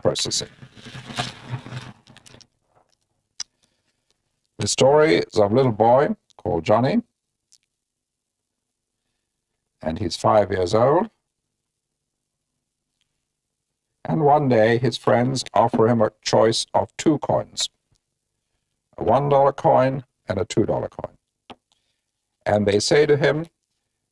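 A middle-aged man speaks calmly and clearly, close to a microphone, in short phrases with pauses.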